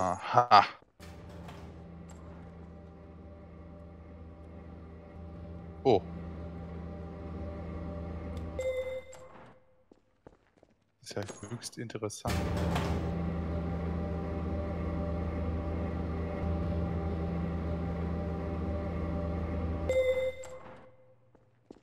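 An elevator hums steadily as it moves.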